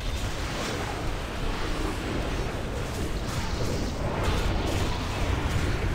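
Spell effects crackle and whoosh in a busy battle.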